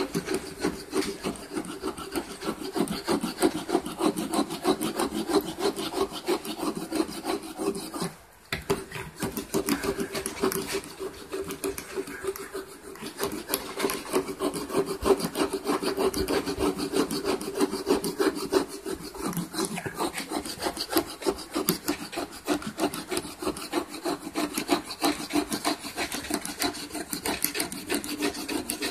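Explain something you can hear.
A stiff brush scrubs rapidly back and forth across a wooden surface.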